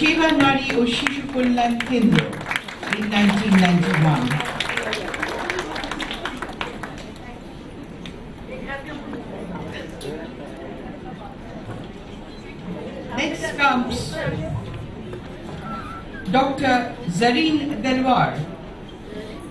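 A woman speaks over a loudspeaker in an echoing hall.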